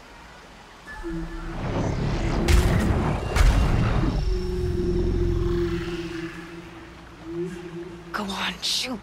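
A large machine whirs and groans with a low mechanical hum.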